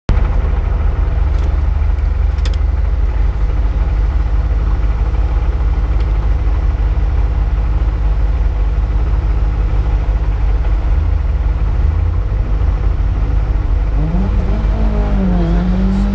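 A rally car engine idles loudly and steadily from inside the car.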